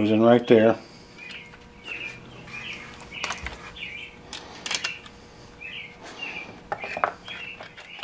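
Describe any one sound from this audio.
Plastic parts click and rattle.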